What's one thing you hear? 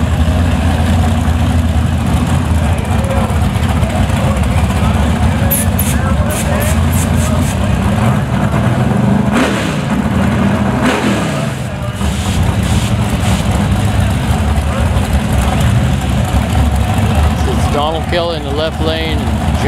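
A drag racing car engine rumbles loudly and steadily outdoors.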